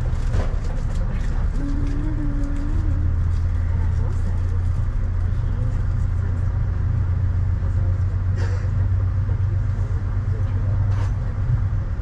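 A car starts to move and drives off.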